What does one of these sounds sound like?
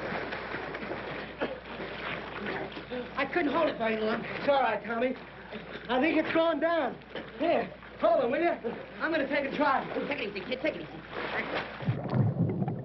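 Water splashes and churns as several people thrash about.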